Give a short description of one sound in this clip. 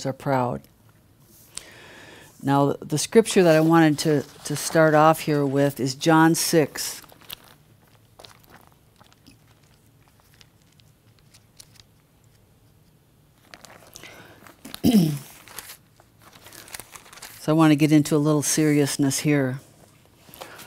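A woman speaks into a microphone with animation, pausing between phrases.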